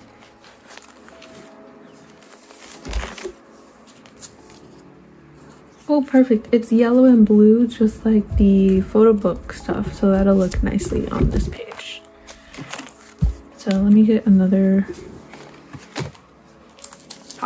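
Plastic binder pages rustle and crinkle as they are turned.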